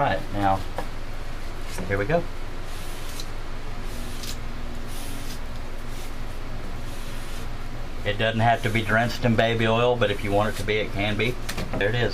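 A cloth rubs and wipes along a hard, smooth surface.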